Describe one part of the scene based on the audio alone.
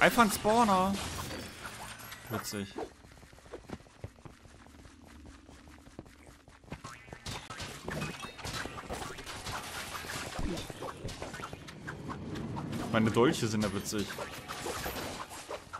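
Game combat sounds clatter with hits and magic effects.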